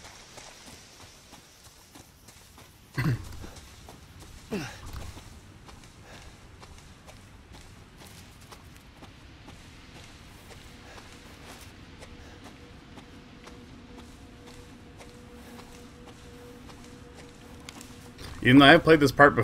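Footsteps rustle through dry leaves and undergrowth.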